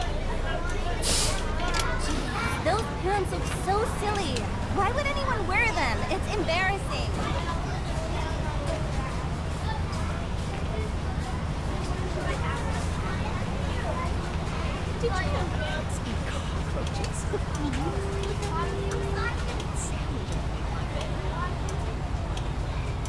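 A school bus engine rumbles as the bus drives along.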